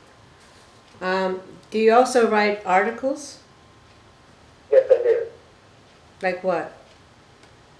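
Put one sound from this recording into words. An elderly woman reads aloud calmly, close by, in short phrases.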